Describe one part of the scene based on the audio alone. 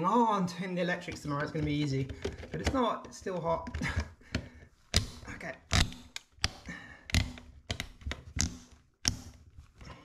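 A plastic cover plate snaps and clicks into place.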